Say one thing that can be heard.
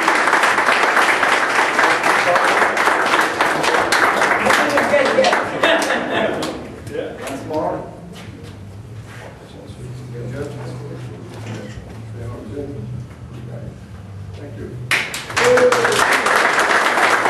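A crowd of men claps.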